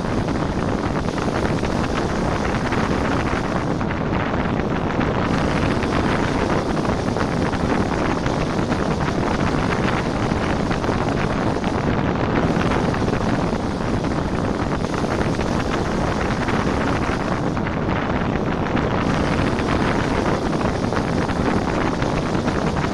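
Wind rushes loudly past the microphone of a bicycle speeding downhill.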